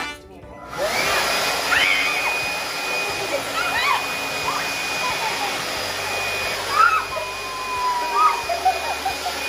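A woman and a child shriek and laugh excitedly.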